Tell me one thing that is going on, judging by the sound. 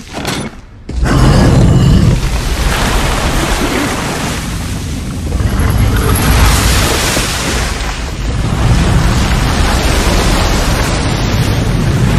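A fiery blast roars and rumbles loudly.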